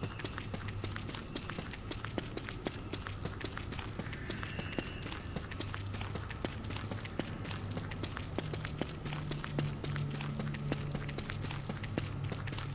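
Footsteps tap quickly and steadily on hard ground.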